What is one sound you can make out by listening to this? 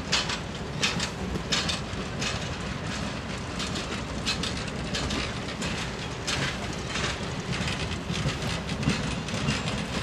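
Passenger railcars rumble steadily along the track.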